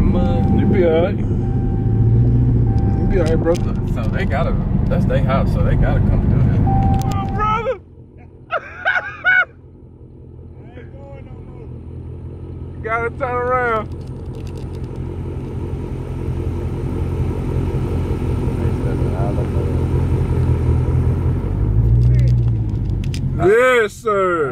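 A car engine rumbles loudly from inside the car.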